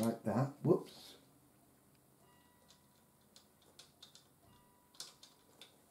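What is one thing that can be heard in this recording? Small plastic parts click together.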